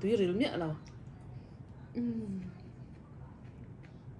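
A young woman slurps and chews noodles.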